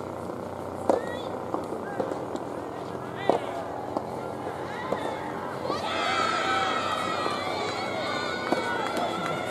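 Rackets strike a soft tennis ball with sharp pops.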